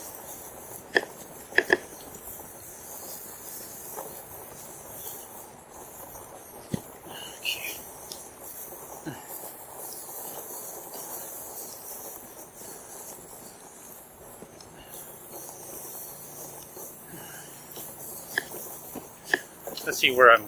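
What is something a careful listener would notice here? A bicycle rattles and knocks over bumps.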